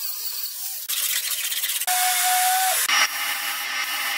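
A pneumatic sander buzzes against a car body.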